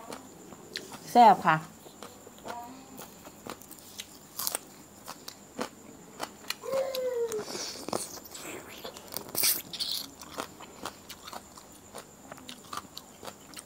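Fresh green stalks snap crisply between fingers.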